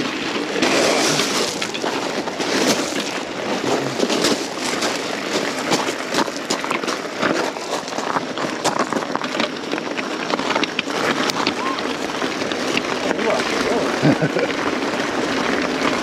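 Wind rushes past close by, buffeting loudly.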